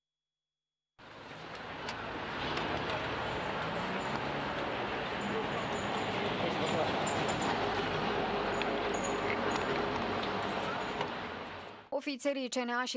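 A crowd of reporters jostles and murmurs outdoors.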